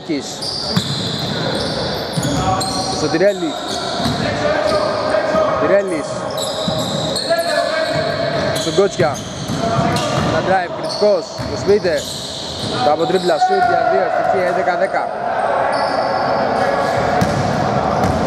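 Sneakers squeak sharply on a wooden floor in a large echoing hall.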